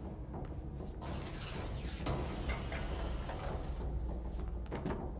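Loose papers burst and flutter through the air.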